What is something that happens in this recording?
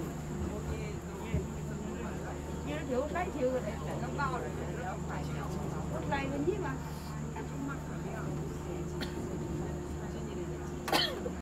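A tourist boat's engine hums low and steady.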